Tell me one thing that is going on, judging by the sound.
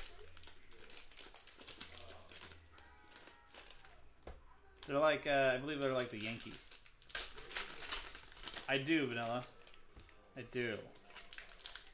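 Foil card packs crinkle and rustle as they are handled and torn open.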